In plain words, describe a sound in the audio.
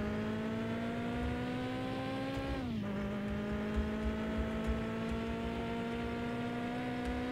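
A car engine hums and slowly rises in pitch as the car speeds up.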